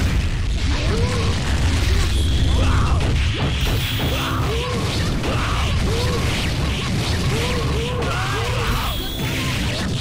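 A young woman cries out as she attacks.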